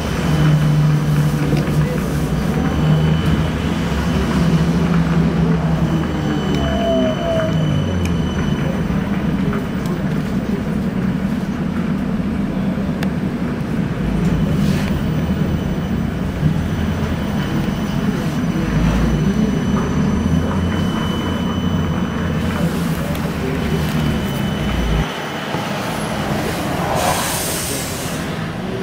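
Traffic rumbles past on a busy road.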